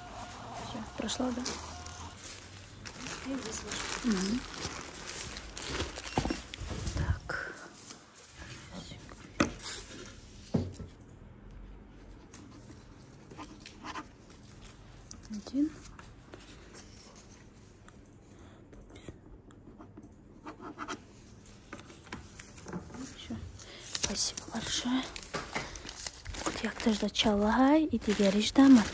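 A plastic mailer bag crinkles and rustles as it is handled.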